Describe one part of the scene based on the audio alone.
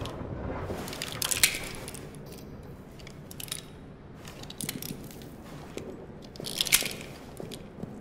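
A revolver's cylinder clicks as it swings open and shut during reloading.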